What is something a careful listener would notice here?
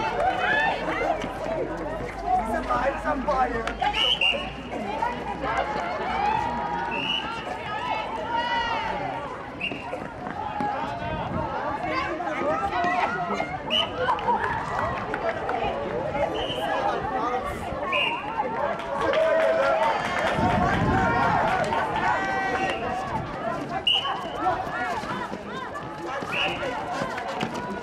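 Young women call out and shout to each other.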